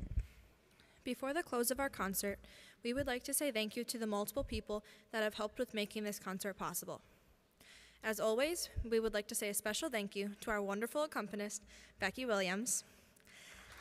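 A boys' choir sings together in a large echoing hall.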